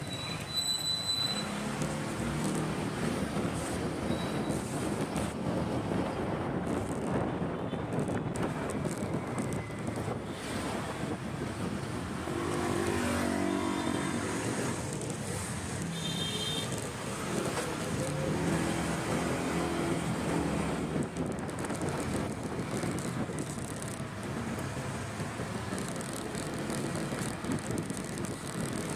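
Wind rushes past a moving rider.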